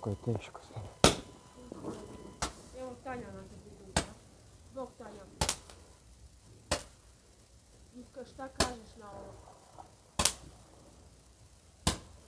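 Firecrackers bang loudly one after another outdoors.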